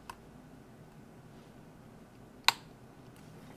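A small metal tool clicks sharply against a metal part.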